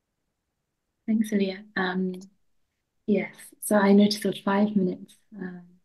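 A second young woman speaks cheerfully over an online call.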